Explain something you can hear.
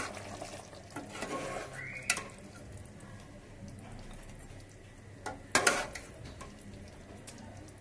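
A metal ladle stirs and knocks against a metal pot.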